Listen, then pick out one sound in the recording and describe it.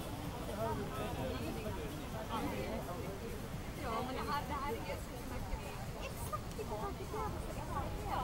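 A crowd of adults chatters and talks nearby outdoors.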